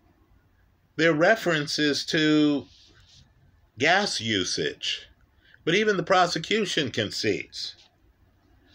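A middle-aged man speaks calmly and close to the microphone, in short bursts with pauses.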